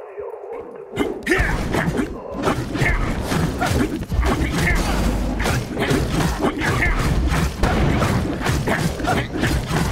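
Game sword slashes and magic blasts clash rapidly in combat.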